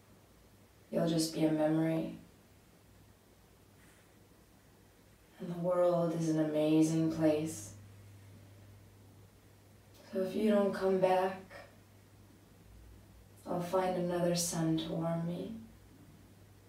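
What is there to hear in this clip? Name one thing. A young woman speaks calmly close by, in short phrases with pauses.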